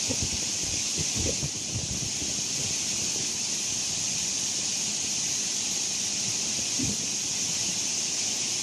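Heavy waterfalls roar and crash steadily onto rocks.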